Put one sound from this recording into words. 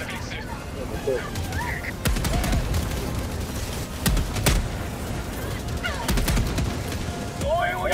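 A large engine roars overhead as it lands.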